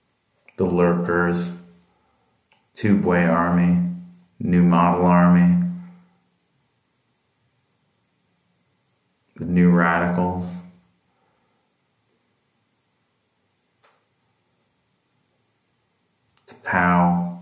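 A middle-aged man speaks calmly and close by, in short phrases with pauses.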